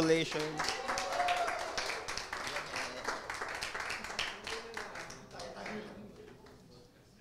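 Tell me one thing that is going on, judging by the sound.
An audience applauds in a large hall, then the clapping dies away.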